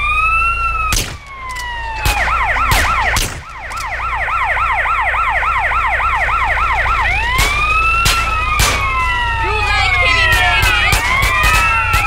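Gunshots crack in sharp bursts.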